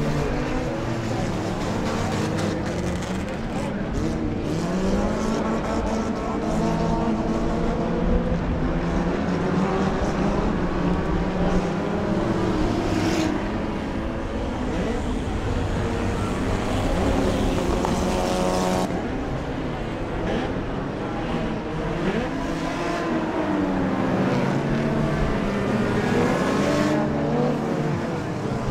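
Racing car engines roar and rev as cars speed around a track outdoors.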